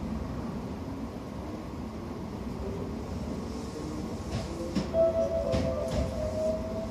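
A train pulls away with a motor whine rising in pitch.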